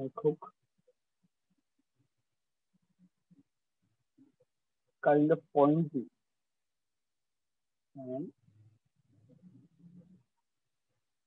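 A man speaks calmly and briefly into a close microphone, with long pauses.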